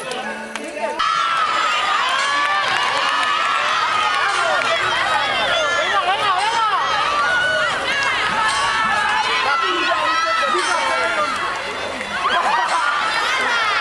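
Children cheer and shout excitedly during a game.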